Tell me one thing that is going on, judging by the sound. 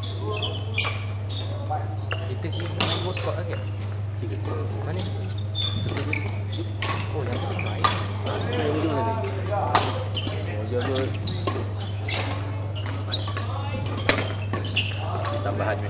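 Sport shoes squeak on a wooden court.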